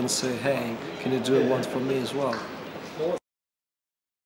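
A man talks close by in a relaxed, friendly way.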